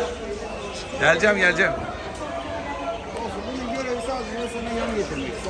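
Small parrots chirp and twitter close by.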